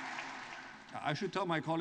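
A man speaks calmly into a microphone in a big echoing hall.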